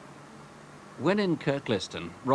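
A man shouts outdoors.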